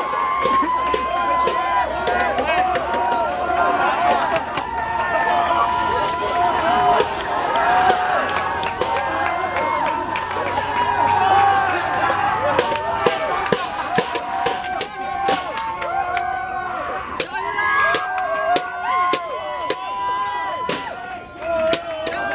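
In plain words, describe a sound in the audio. Young men chant and cheer loudly from close by.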